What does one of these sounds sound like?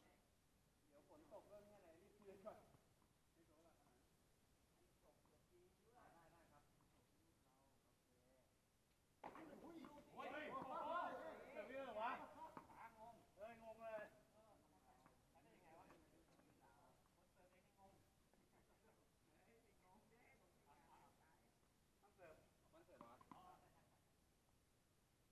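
Men talk casually at a distance, outdoors.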